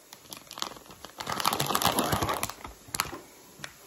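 A plastic packet crinkles and rustles.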